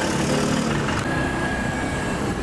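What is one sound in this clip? A motorbike engine rumbles close by.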